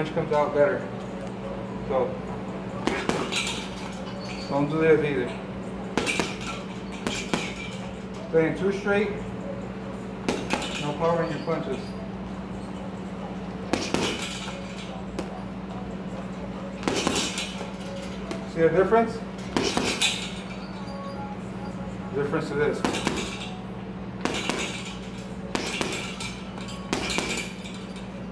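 Gloved fists thump hard against a heavy punching bag in quick bursts.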